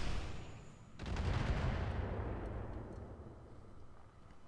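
A loud blast booms and slowly rumbles away.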